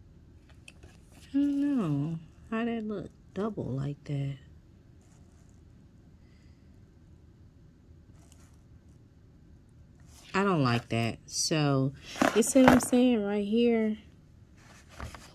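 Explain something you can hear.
Sheets of paper rustle and slide as they are handled.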